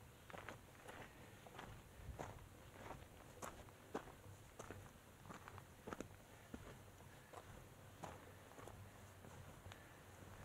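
Footsteps crunch on rocky dirt at a steady walking pace.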